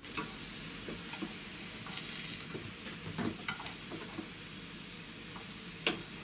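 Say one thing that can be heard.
Chopsticks tap against a pan.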